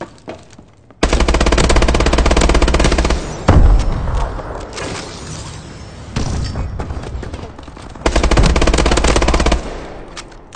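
An automatic rifle fires rapid bursts.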